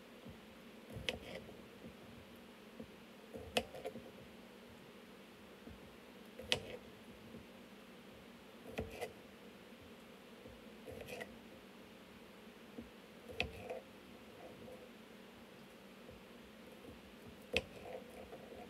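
A knife chops through potatoes onto a cutting board with sharp knocks every few seconds.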